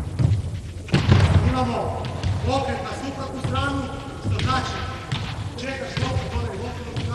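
A man calls out loudly across an echoing hall.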